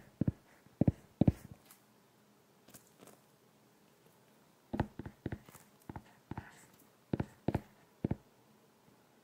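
A stylus taps and scratches on a tablet's glass surface, close by.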